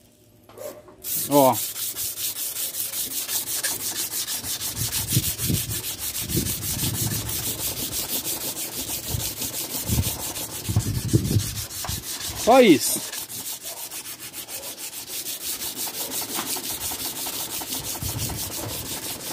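A sharpening stone scrapes back and forth along a metal blade.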